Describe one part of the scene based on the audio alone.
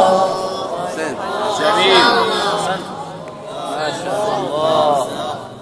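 A young man chants melodically into a microphone, heard through loudspeakers with echo.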